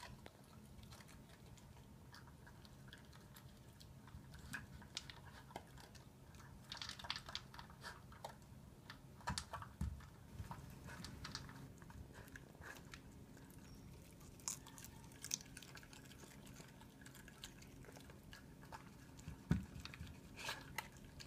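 A dog crunches and chews leafy vegetables up close.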